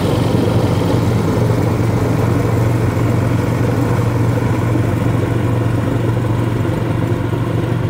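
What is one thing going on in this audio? A snowblower engine roars steadily close by.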